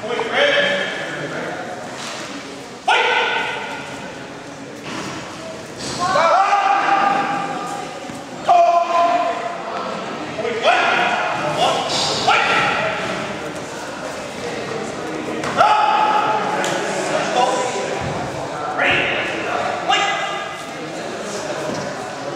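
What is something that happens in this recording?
Men shout loudly and repeatedly in a large echoing hall.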